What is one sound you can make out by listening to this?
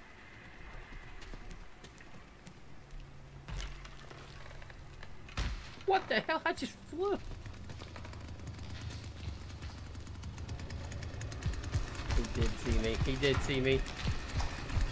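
Footsteps run across wooden floorboards.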